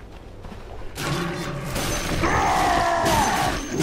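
Loud fighting sounds of blows and bursting magic effects break out.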